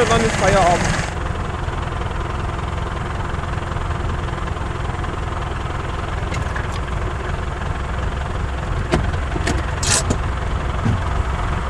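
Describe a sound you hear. A hay baler clatters and thumps as it picks up hay.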